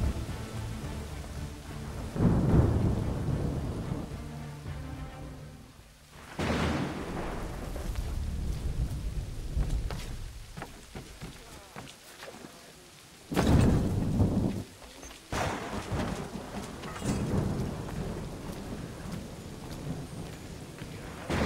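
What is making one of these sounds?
Strong storm wind howls and gusts.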